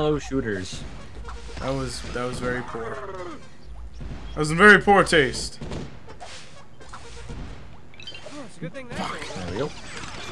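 Cartoonish blasts pop and crackle.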